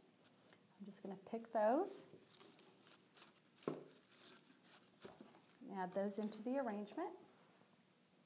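A middle-aged woman talks calmly into a clip-on microphone, close by.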